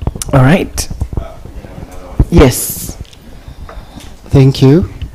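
A man speaks in short bursts through a microphone.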